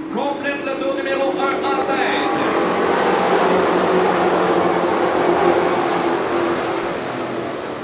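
Race car engines roar loudly, rising and falling in pitch.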